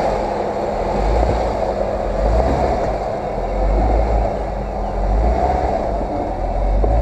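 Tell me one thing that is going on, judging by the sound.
Tyres crunch and grind over rocks.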